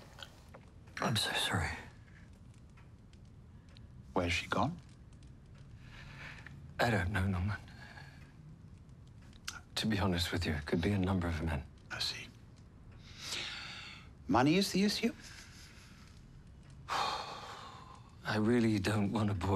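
A middle-aged man speaks quietly and with emotion nearby.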